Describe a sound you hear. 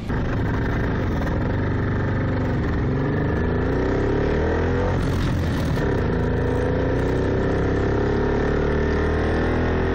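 An old car engine drones loudly and rises in pitch as it speeds up.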